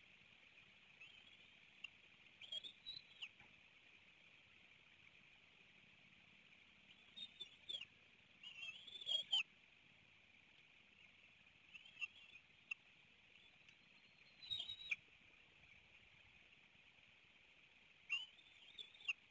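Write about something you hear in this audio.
Young eagles chirp and squeal in short bursts, close by.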